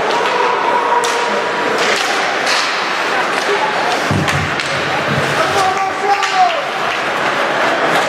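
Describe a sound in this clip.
Hockey sticks click against the puck.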